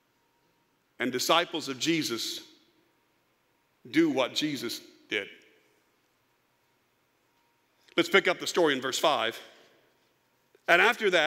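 A middle-aged man speaks with emphasis through a microphone, in bursts with long pauses.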